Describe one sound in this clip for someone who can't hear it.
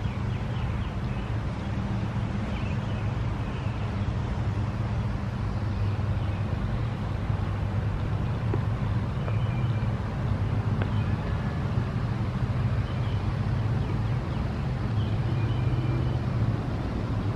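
Wind blows steadily outdoors, rumbling on the microphone.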